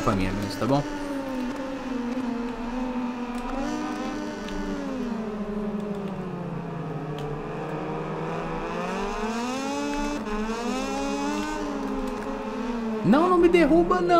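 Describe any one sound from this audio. A motorcycle engine revs high and shifts gears, its pitch rising and falling.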